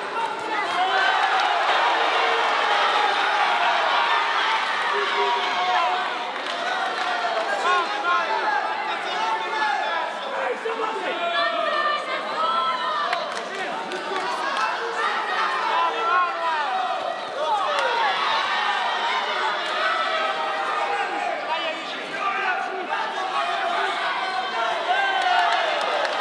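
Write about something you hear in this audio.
A large crowd cheers and shouts, echoing in a big hall.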